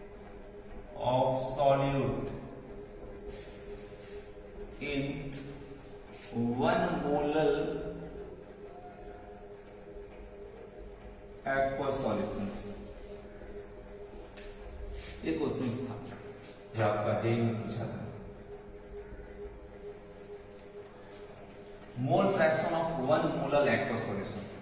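A man speaks clearly in a calm teaching manner, in bursts with pauses.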